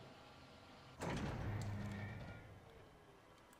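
A heavy crane rumbles and clanks as it moves.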